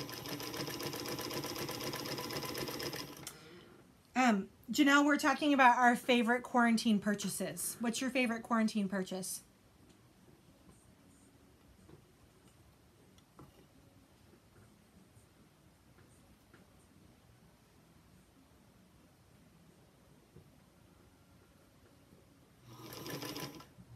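A sewing machine hums and whirs as it stitches.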